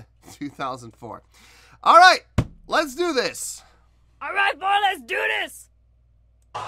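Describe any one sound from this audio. A middle-aged man laughs close by.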